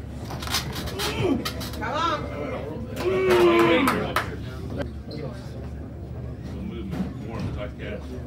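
A crowd of men shouts and cheers loudly in a noisy room.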